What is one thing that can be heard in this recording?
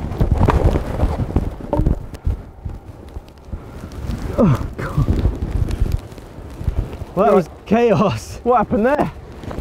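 Sparks crackle and fizz on the ground.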